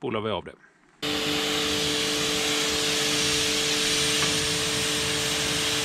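A pressure washer sprays water against a wheel with a loud, steady hiss.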